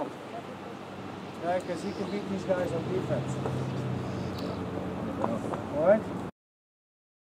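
Young men murmur and chatter nearby.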